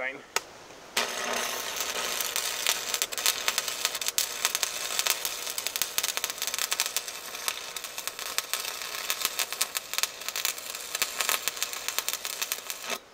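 An arc welder crackles and sizzles steadily.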